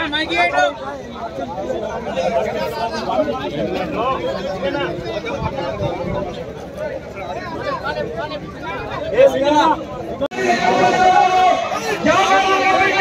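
A crowd of men murmurs and calls out in the background.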